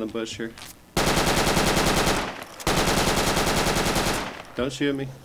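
A rifle fires rapid automatic bursts.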